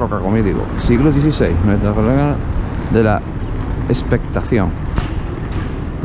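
A car drives slowly past nearby.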